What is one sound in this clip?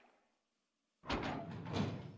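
A heavy metal door creaks and clanks open.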